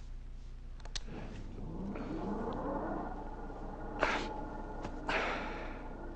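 A man speaks softly and close by.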